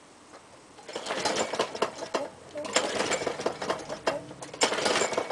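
A lawn mower engine starts and runs with a loud rattling roar.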